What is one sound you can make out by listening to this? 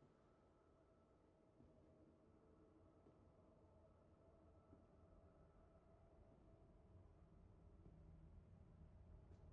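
Slow footsteps fall on a hard floor.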